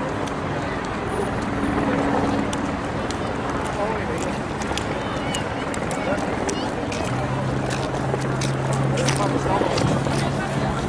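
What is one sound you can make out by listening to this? A crowd murmurs outdoors in an open square.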